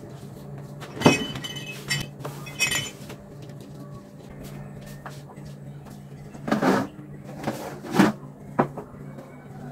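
Glasses clink against each other on a table.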